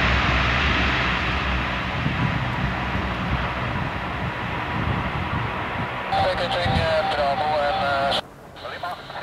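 A jet engine roars loudly in the distance.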